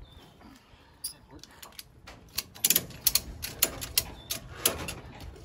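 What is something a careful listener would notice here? A ratchet strap clicks sharply, over and over.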